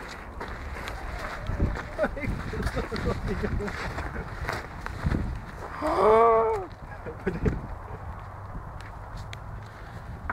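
Footsteps crunch over gravel and grass.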